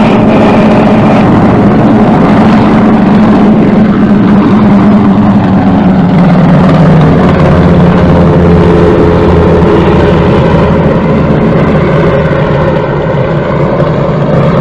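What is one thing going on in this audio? Propeller engines of a large aircraft drone loudly and steadily.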